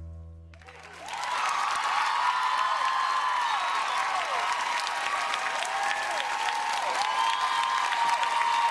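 A large audience applauds.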